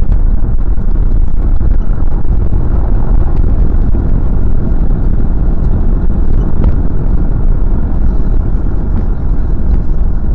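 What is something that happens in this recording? A car engine drones steadily with loud road rumble from inside the car.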